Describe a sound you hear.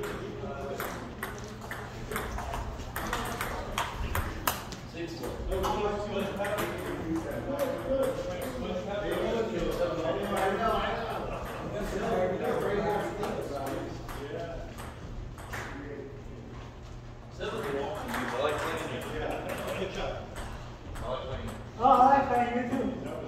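A ping-pong ball clicks back and forth between paddles and table.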